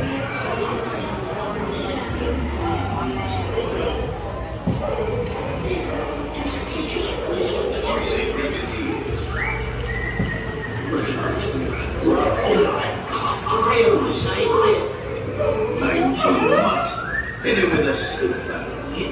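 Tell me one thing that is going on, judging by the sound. Men call out and plead through loudspeakers in a large echoing space.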